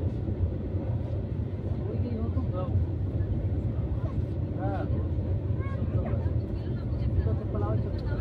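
A freight train rumbles and clatters past on the tracks, close by.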